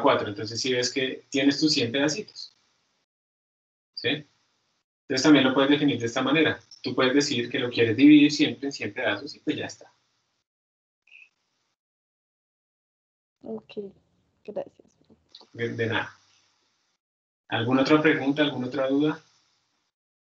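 A man explains calmly over an online call, in bursts with pauses.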